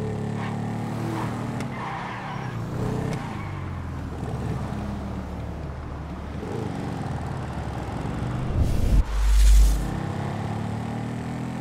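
A motorcycle engine revs and roars steadily.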